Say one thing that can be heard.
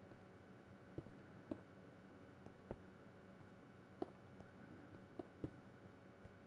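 Footsteps tap on stone at an uneven pace.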